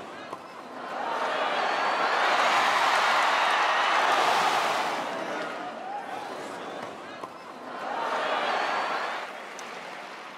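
A large crowd cheers and applauds loudly, swelling and fading.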